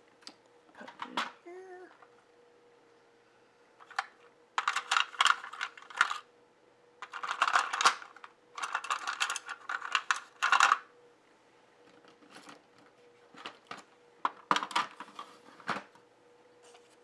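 Plastic brush cases clack and rattle as they are handled close by.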